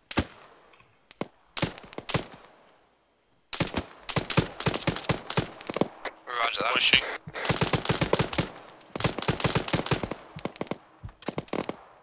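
Gunshots crack in rapid bursts, echoing outdoors.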